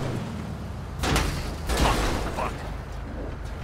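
A car crashes and tumbles over with loud metallic thuds.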